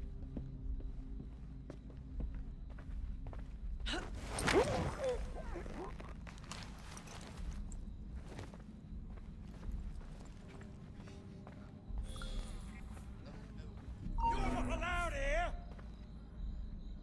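Footsteps pad softly on carpet.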